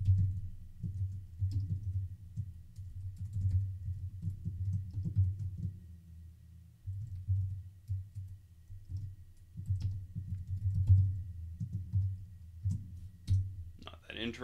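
Keys tap on a keyboard in quick bursts.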